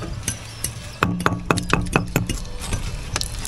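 A metal tool scrapes and taps against brick.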